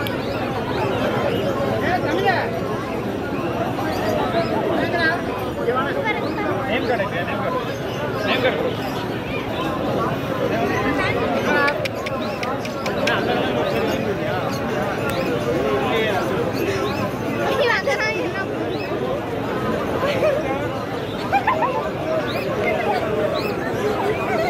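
Puppies whimper and yelp.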